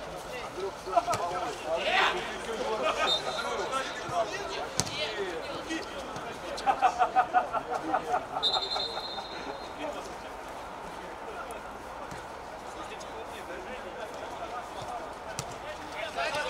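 A football thuds as it is kicked on an outdoor pitch.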